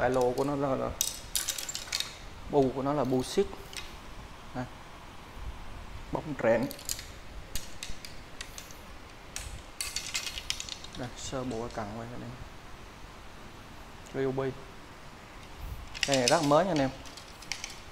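Fishing rods clack softly against each other as they are handled.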